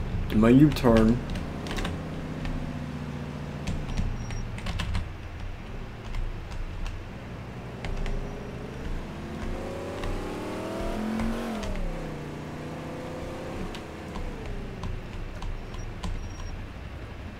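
A car engine hums and revs up, then eases off.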